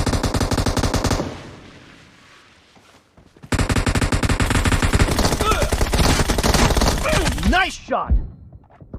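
Automatic gunfire rattles in fast bursts.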